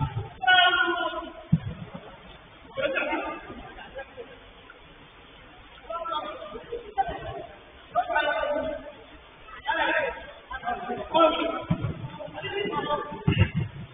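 Men shout and call out to each other at a distance.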